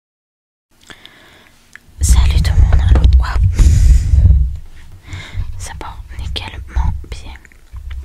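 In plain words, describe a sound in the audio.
A young woman whispers very close to a microphone.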